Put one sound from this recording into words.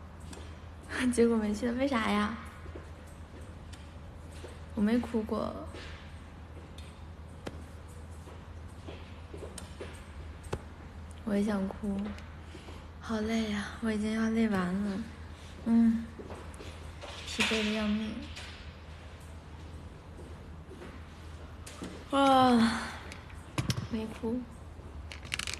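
A young woman talks close to a phone microphone in short, lively bursts.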